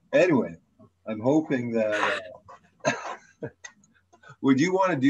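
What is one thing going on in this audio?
An older man speaks and laughs over an online call.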